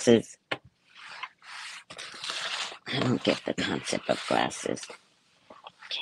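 Cloth rustles as a woman handles fabric.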